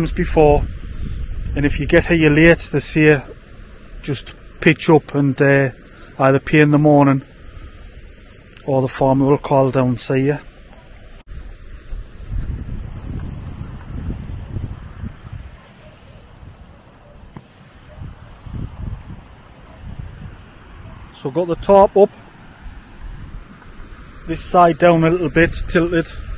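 A man talks calmly close to a microphone, outdoors.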